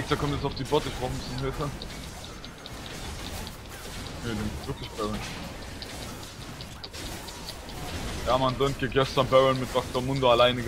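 Magic blasts and blows crackle and thud in a fierce fight.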